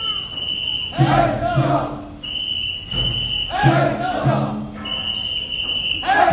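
A group of men chant loudly in unison in rhythmic bursts.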